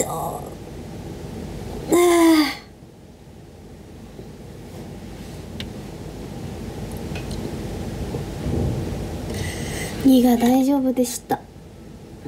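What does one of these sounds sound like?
A young woman speaks briefly and casually close to a microphone.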